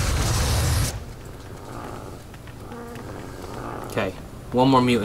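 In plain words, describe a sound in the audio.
Flames crackle and hiss.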